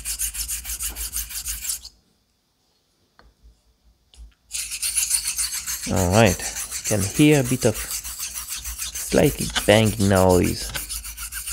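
A steel blade scrapes rhythmically back and forth across a sharpening stone.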